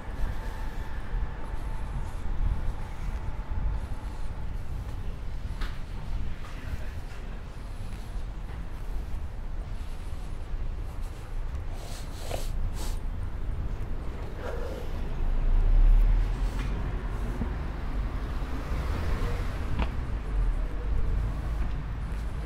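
A low city hum and light wind rumble steadily outdoors.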